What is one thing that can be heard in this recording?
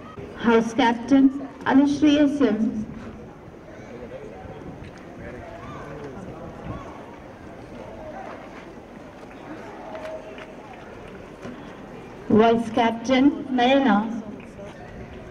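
A woman speaks loudly and clearly close by.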